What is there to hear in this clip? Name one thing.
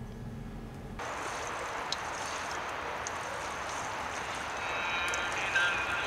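Water pours from a bottle onto soil.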